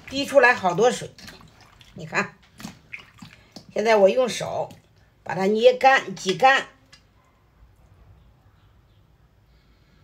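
Hands squeeze wet vegetable pieces with a soft squelch.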